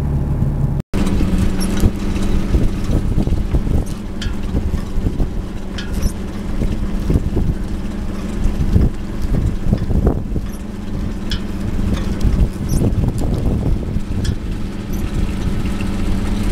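A net hauler winch hauls in a fishing net.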